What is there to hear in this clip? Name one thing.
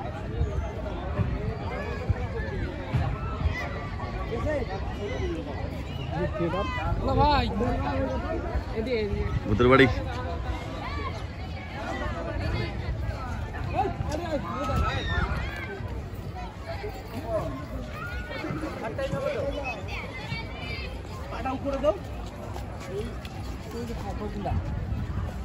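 Several adults chatter nearby outdoors.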